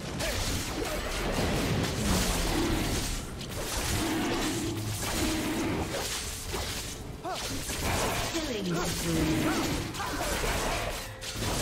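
Quick magical blows and strikes clatter steadily.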